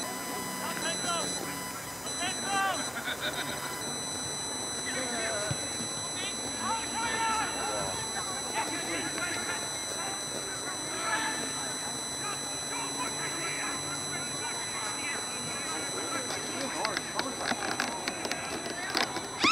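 A crowd of spectators shouts and cheers outdoors at a distance.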